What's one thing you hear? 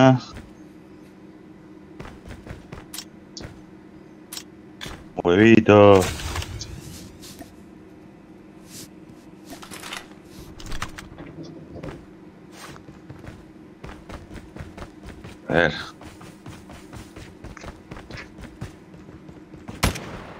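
Quick footsteps patter steadily on a hard floor and then on softer ground.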